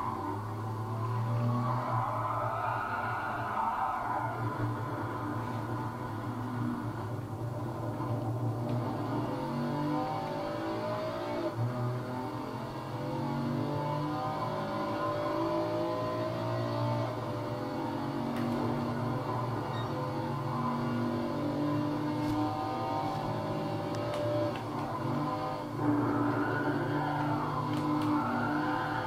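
A racing game's car engine roars and revs steadily through speakers.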